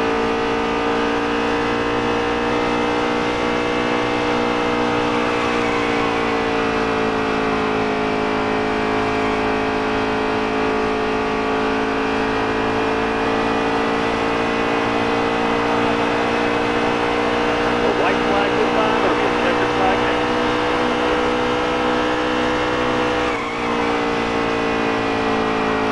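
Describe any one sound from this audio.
A racing truck's engine roars steadily at high speed, its pitch shifting slightly as it eases and pushes.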